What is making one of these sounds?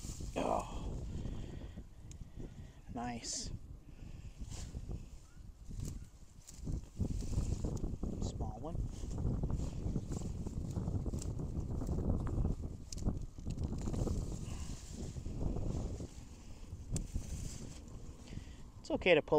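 Leafy plants rustle as a root is pulled from the soil.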